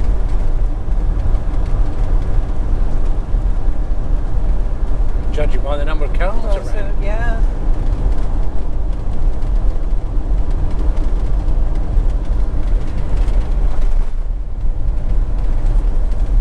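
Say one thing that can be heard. A car engine hums steadily as tyres roll over the road, heard from inside the car.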